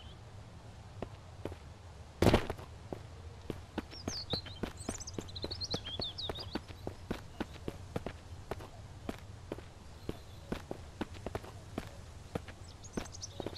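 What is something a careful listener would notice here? Footsteps crunch on dry ground at a steady walking pace.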